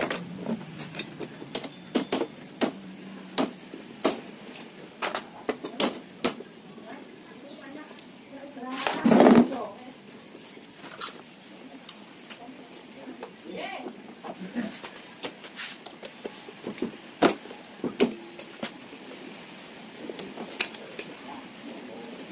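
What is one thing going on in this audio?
Metal tools click and clink against engine parts close by.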